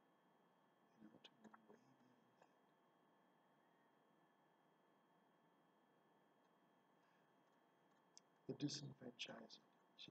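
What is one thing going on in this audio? A man speaks quietly and close to a microphone, in short bursts.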